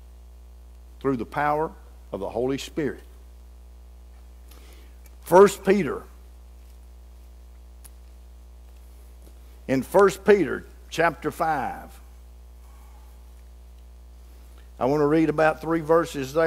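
An elderly man speaks slowly and deliberately through a microphone, with pauses between phrases.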